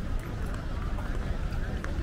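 A runner's footsteps patter on paving nearby.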